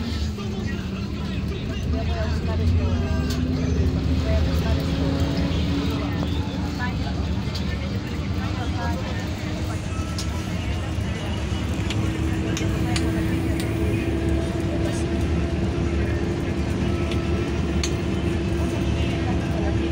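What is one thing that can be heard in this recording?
A bus engine rumbles and hums steadily from inside, with a slowly rising whine.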